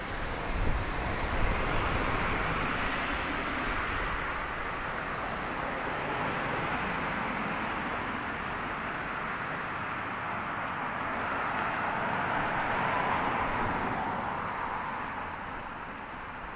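Cars drive past on a nearby road, swelling and fading.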